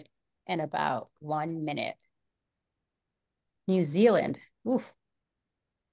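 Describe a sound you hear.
A woman speaks briefly through an online call.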